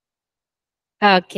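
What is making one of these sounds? A young woman sings a short rising note into a microphone.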